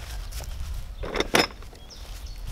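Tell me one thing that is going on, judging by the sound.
A log thumps into a metal wheelbarrow.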